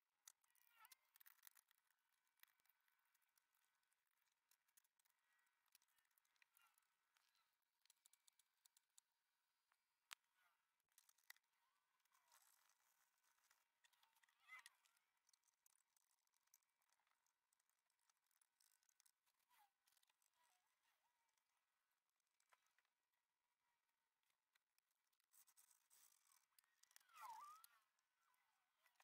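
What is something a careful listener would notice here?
Plastic parts click and rattle as hands handle them.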